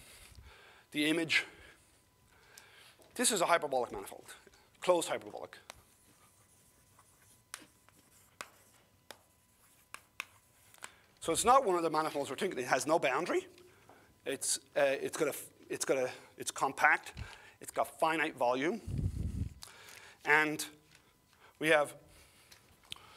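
A man lectures in a steady voice, close by.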